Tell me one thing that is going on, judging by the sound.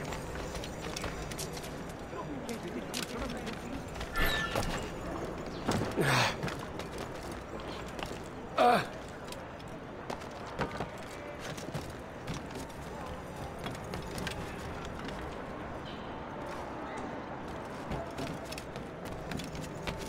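Quick footsteps run over stone and roof tiles.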